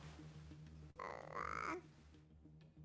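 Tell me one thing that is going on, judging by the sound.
A baby coos softly.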